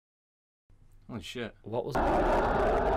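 A young man speaks with animation through a microphone.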